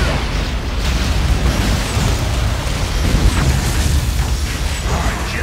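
A heavy vehicle engine rumbles low and steady.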